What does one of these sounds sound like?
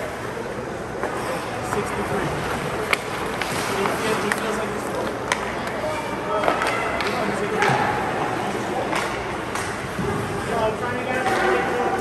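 Hockey sticks clack sharply against the puck.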